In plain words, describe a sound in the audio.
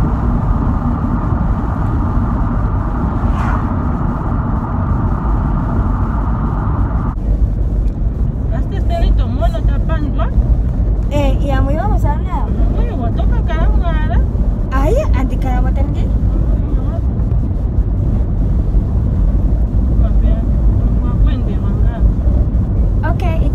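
A car engine hums and tyres rumble on the road.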